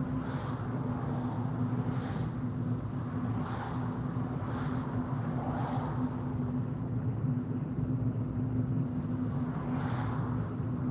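Tyres roll and rumble on the road surface.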